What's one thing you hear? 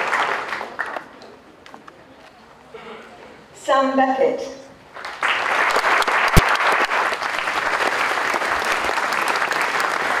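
An audience claps and applauds in a large hall.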